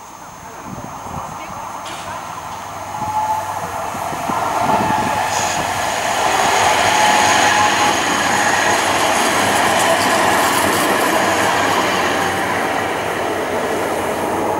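An electric tram-train approaches and rolls past close by.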